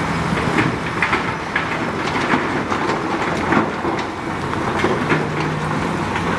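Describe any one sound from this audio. Rocks scrape and crunch under a bulldozer blade.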